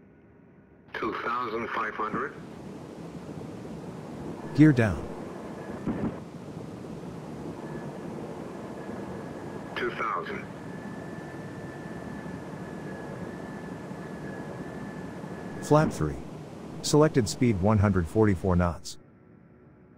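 Jet engines hum steadily inside a cockpit.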